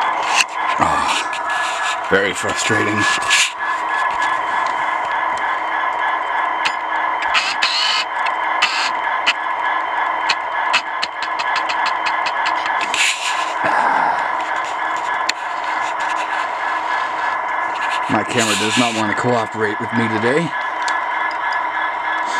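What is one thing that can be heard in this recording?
A model train's motor hums steadily as it runs along the track.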